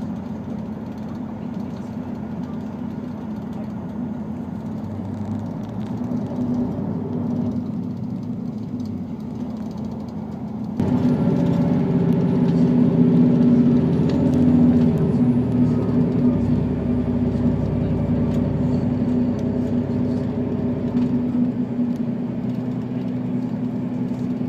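A diesel railcar engine drones, heard from inside as the railcar travels at speed.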